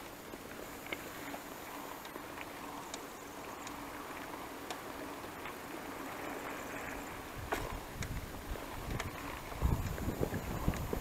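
Bicycle tyres roll over paving stones.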